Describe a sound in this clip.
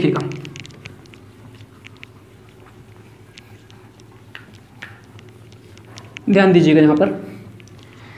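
A cloth wipes across a whiteboard.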